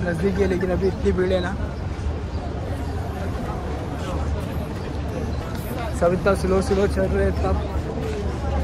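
A large crowd murmurs and shuffles outdoors.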